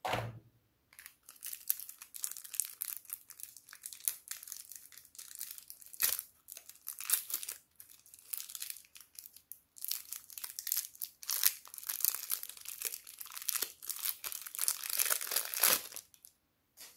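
A plastic wrapper crinkles and rustles as it is opened and peeled.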